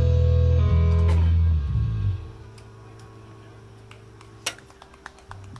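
A rock band plays a loud final chord through amplifiers that rings out and fades.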